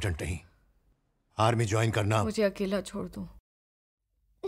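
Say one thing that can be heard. A man speaks in a low, serious voice close by.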